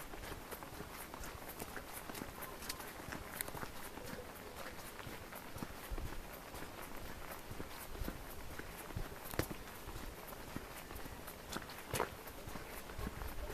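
Footsteps crunch on a gravel path close by.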